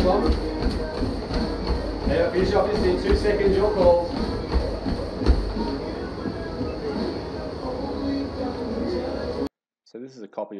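Running feet thud steadily on a treadmill.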